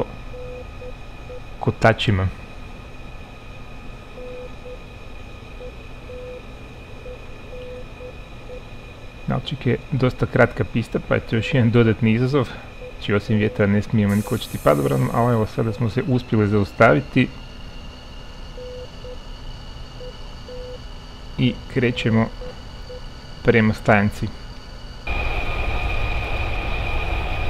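A jet engine whines steadily.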